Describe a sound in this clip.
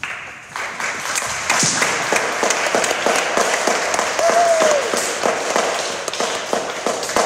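An acoustic guitar is strummed in a steady rhythm in a large echoing hall.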